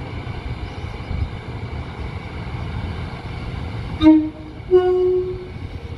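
A diesel multiple unit pulls into the station.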